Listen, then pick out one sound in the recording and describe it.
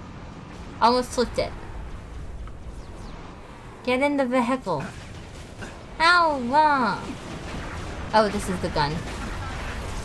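A young woman talks with animation in a high voice, close to a microphone.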